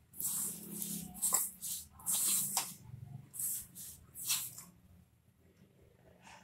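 Hands rub and squeeze dry flour in a metal bowl with soft rustling scrapes.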